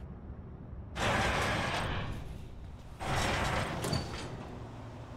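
A heavy metal door creaks and scrapes open.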